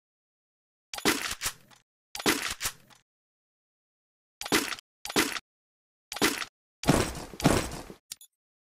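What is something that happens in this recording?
Short game interface clicks and chimes sound.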